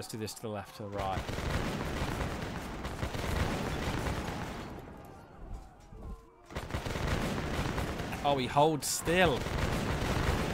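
Musket volleys crackle and rumble in battle.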